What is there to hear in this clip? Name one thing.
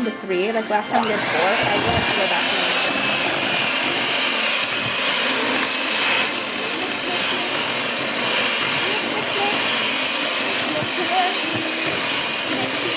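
An electric hand mixer whirs steadily as its beaters churn batter.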